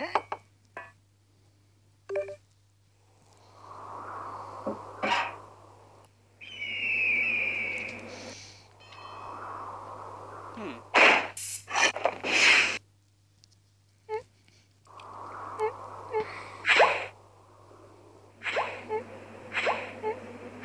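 Cartoon sound effects whoosh and pop.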